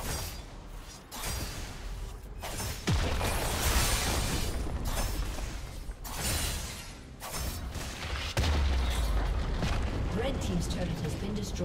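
Magic blasts and heavy impacts crash and boom in a fast fight.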